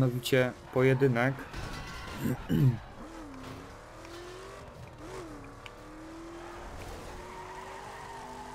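A car engine revs and roars as a car speeds along.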